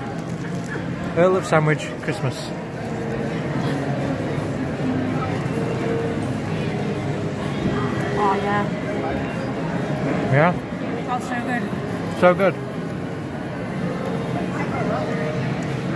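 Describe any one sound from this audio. A crowd murmurs in a busy echoing hall.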